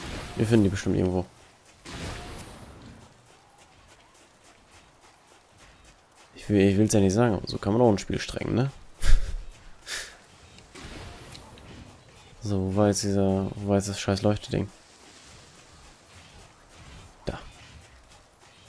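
Footsteps patter quickly on soft sand.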